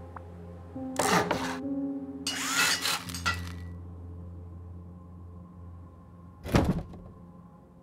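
Heavy metal and wooden pieces clatter and thud into place.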